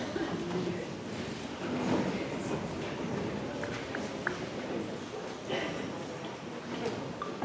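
An audience chatters quietly throughout a large room.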